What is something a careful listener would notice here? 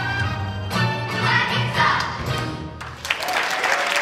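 A choir of children sings.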